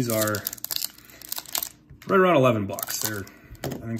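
A foil pack crinkles as it is torn open.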